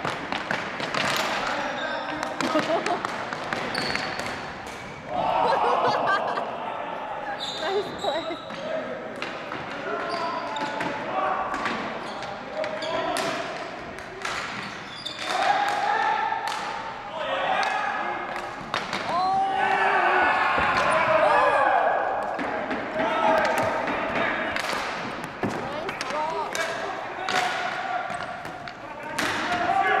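Young men shout to one another across the hall.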